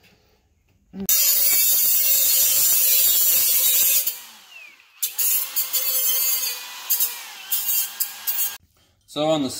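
An angle grinder grinds metal with a loud, high whine.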